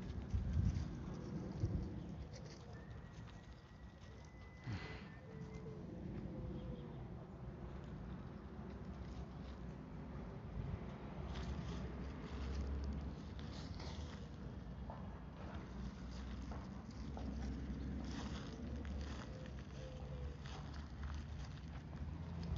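Footsteps scuff on pavement and dry leaves.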